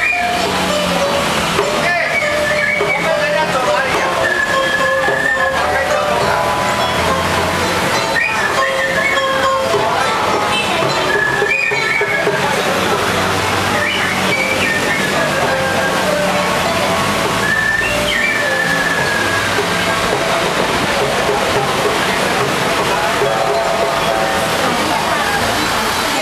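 A young woman sings through a loudspeaker outdoors.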